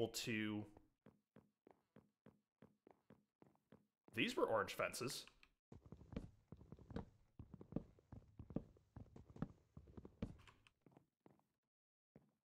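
Footsteps tap quickly on a wooden floor.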